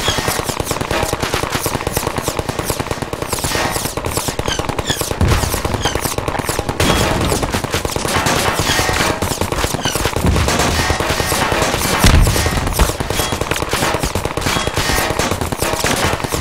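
A rapid automatic gun fires in quick bursts.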